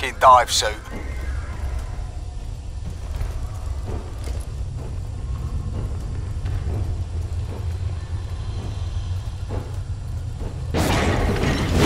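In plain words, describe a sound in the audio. Heavy footsteps clank on a metal floor.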